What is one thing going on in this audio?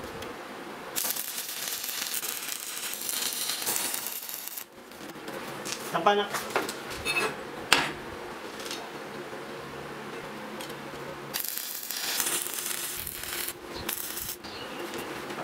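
An arc welder crackles and sizzles loudly.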